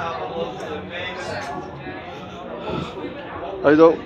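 Men and women chat nearby in a low murmur.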